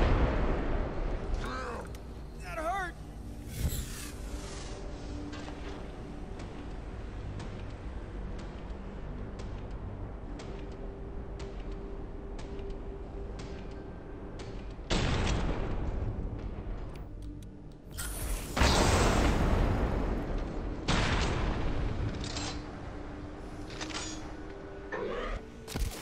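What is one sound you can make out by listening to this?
A gun fires quick shots.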